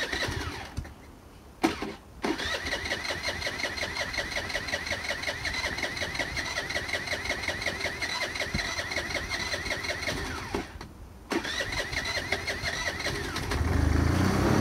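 A scooter's kick starter is kicked repeatedly and the engine cranks without catching.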